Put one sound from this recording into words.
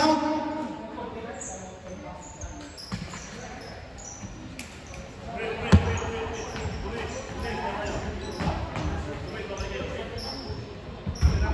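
Voices of young players call out in a large echoing gym.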